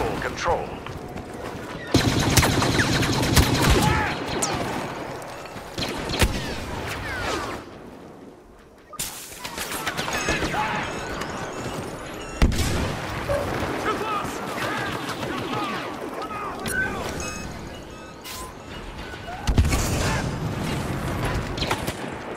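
A blaster rifle fires rapid laser shots.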